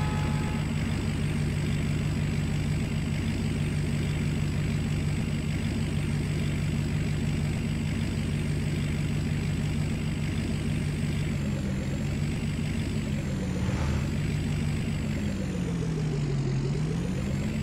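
A truck engine roars steadily as it speeds along, then drops in pitch as it slows down.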